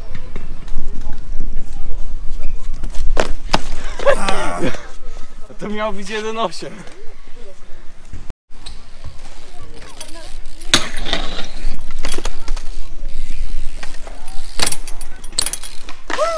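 Bike wheels land with sharp knocks on concrete.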